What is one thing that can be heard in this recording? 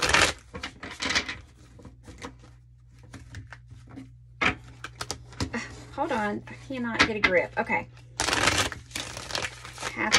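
Playing cards shuffle and riffle between hands.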